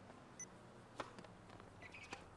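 A tennis racket strikes a ball.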